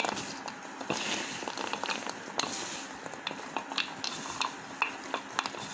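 Gloved hands squish and rustle through a heap of damp rice in a metal bowl.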